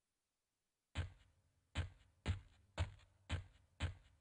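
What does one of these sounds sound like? Footsteps thud at a steady pace on soft ground.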